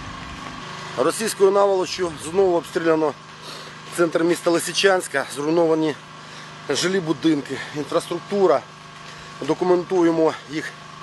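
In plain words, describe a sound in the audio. A middle-aged man speaks with animation close by.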